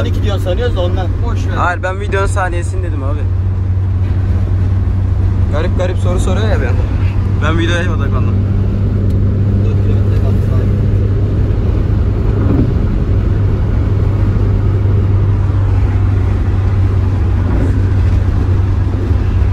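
A car engine hums steadily inside the cabin while driving.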